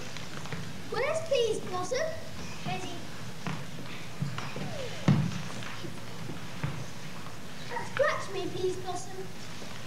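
Children's voices sing from a distance across a large hall.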